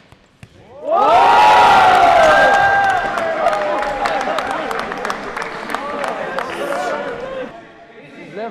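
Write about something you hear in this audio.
Spectators cheer and shout loudly in an echoing hall.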